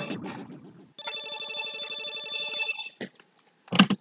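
A video game's score tally counts up with a rapid electronic beeping.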